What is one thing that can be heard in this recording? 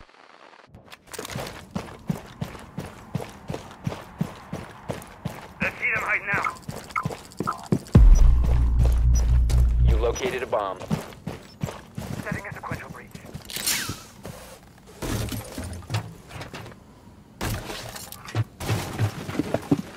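Footsteps crunch quickly on gravel and dirt.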